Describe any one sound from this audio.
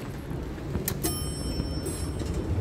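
An elevator chime dings.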